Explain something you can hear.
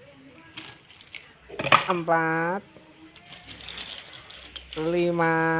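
Plastic toys clatter and rattle in a plastic basin.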